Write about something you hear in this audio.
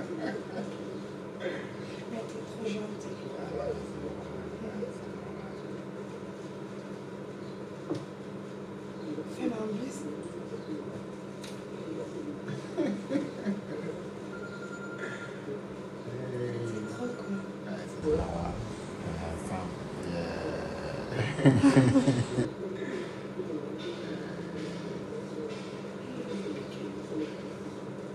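A young man talks and laughs nearby.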